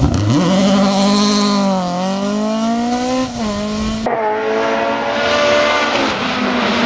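A rally car engine roars loudly and revs up and down through gear changes.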